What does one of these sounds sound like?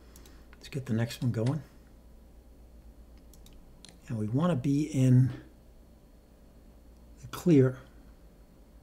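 An elderly man speaks calmly into a microphone in short bursts.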